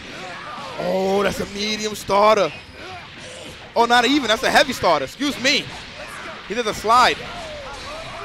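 Punches and kicks land with sharp smacks.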